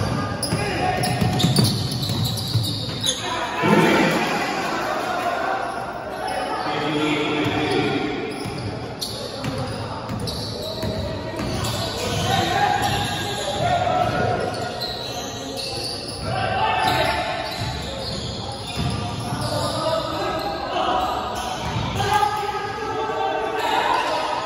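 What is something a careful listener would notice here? Spectators shout and cheer in an echoing gym.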